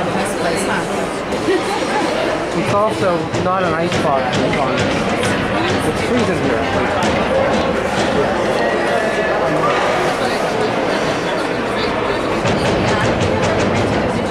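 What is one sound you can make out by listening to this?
Skates scrape and hiss on ice in a large echoing rink.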